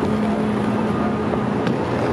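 City traffic hums steadily.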